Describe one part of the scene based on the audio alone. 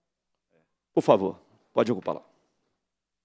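A man speaks briefly in a large room.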